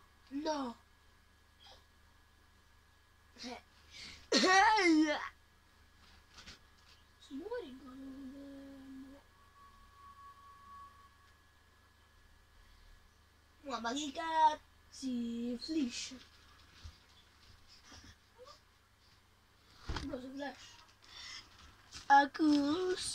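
A child talks excitedly close by.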